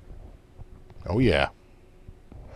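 An electric guitar note swoops sharply down and back up with a whammy bar.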